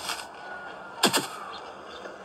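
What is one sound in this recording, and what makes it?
A loud thump sounds through a small tablet speaker.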